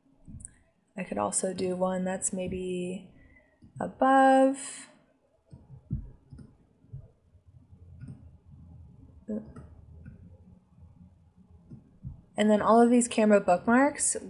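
A young woman talks calmly into a microphone, pausing now and then.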